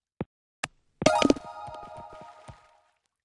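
A bright chiming jingle rings out and fades.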